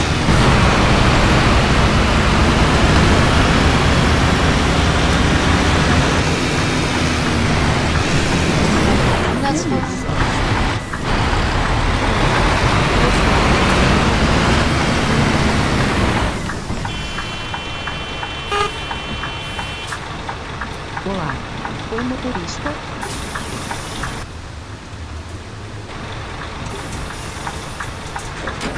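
Rain patters steadily on the windscreen.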